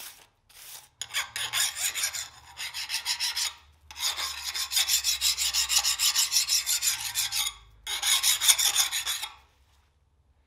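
A metal file rasps back and forth along a steel blade.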